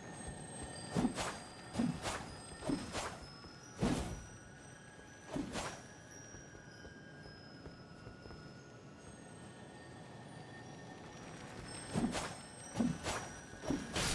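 A sword swishes and strikes repeatedly.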